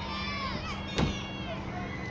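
A ball smacks sharply into a catcher's mitt.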